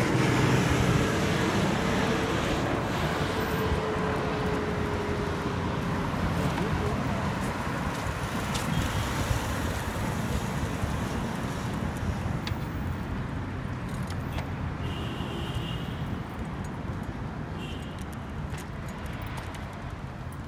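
Traffic rumbles steadily along a nearby road.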